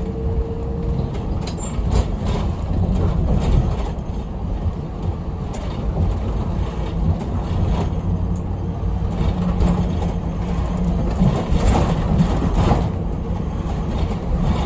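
The bus interior rattles and knocks over bumps.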